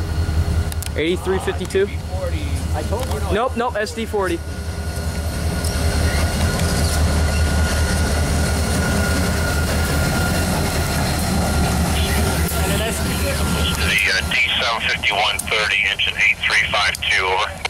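A train horn blares loudly, bending in pitch.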